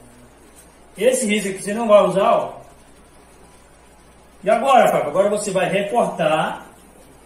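A young man speaks calmly and clearly nearby.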